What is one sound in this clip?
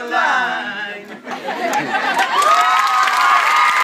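A group of men and women clap their hands in rhythm.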